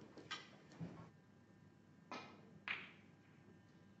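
A cue tip strikes a snooker ball with a sharp click.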